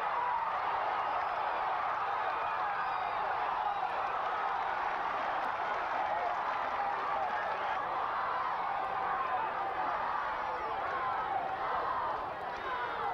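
A crowd cheers and shouts loudly throughout.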